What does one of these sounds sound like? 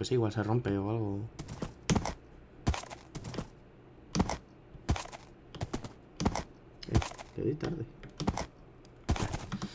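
A horse's hooves clop steadily on sand.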